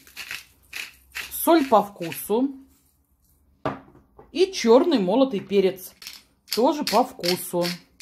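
A pepper mill grinds in short bursts.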